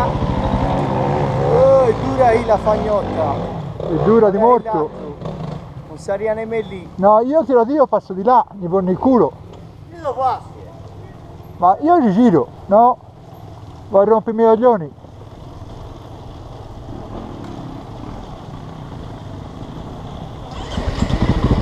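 A motorbike engine runs at a low, steady idle.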